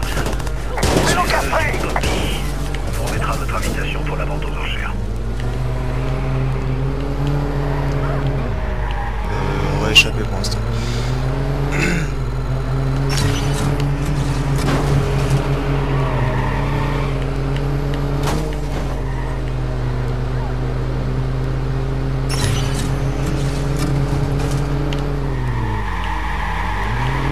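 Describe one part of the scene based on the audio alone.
A car engine roars and revs as the car speeds along.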